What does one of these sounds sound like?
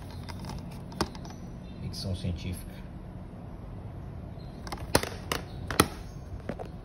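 A plastic disc case taps and clicks as it is handled.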